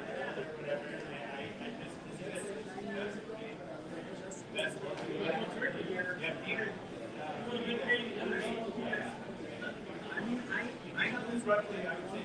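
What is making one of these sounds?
Many adult voices chatter and murmur together in a busy room.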